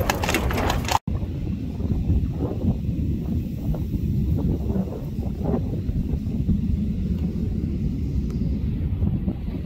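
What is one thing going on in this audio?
Hooves clop on a road a short way off.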